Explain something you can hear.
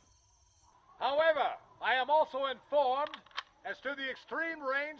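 An elderly man shouts loudly outdoors.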